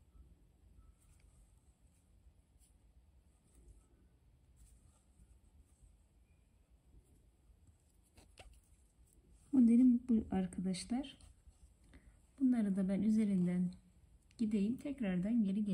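Thread rustles softly as it is pulled through fabric.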